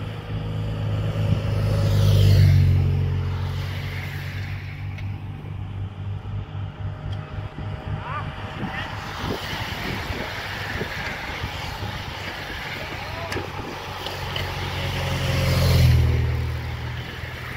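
A motorcycle engine roars close by as it passes.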